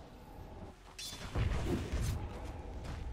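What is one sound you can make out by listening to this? Spell effects burst and crackle with heavy thuds in a game battle.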